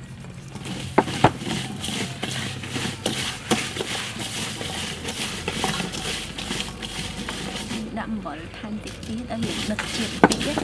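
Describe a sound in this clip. Vegetables clink against the sides of a metal bowl.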